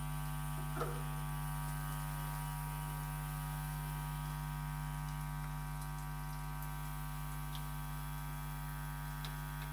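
A record's surface crackles faintly under the needle.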